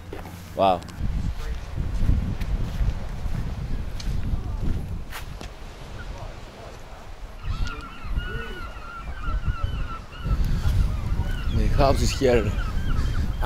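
Wind buffets the microphone outdoors in gusts.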